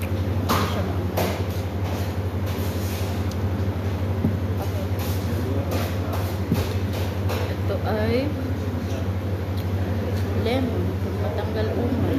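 A fork clinks against a plate.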